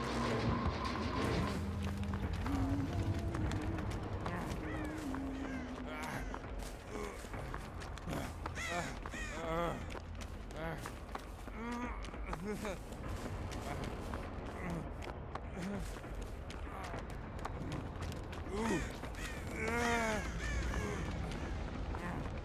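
Footsteps run and rustle through tall grass.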